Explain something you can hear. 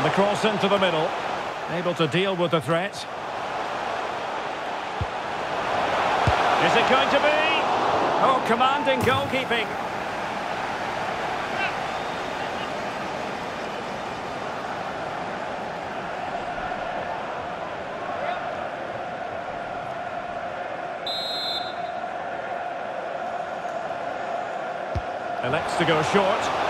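A large stadium crowd cheers and roars steadily, swelling loudly for a few seconds.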